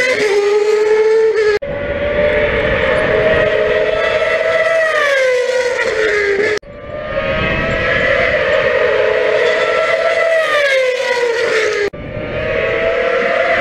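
Racing car engines scream loudly past at high speed, dropping in pitch as they pass.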